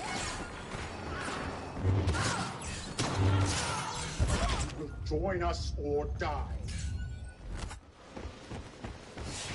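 Blaster shots crack and whine amid game battle noise.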